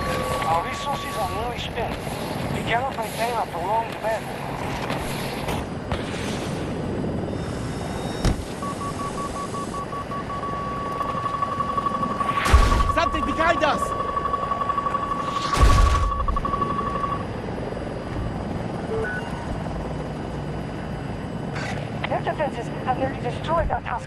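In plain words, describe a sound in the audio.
A helicopter engine and rotor drone steadily throughout.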